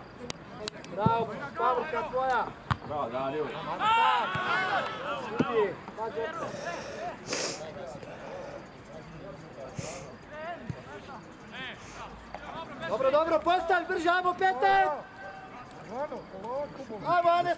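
Young men shout across an open field.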